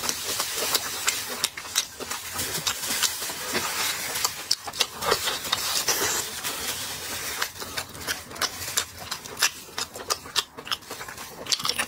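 Plastic gloves crinkle close to a microphone.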